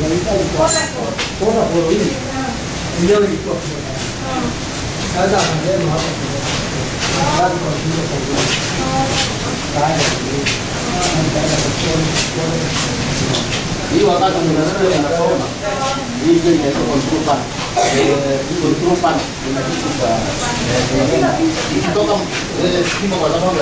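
Several men talk nearby in a room with a slight echo.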